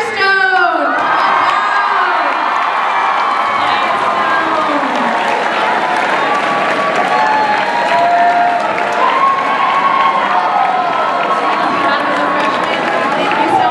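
A young woman speaks into a microphone through loudspeakers.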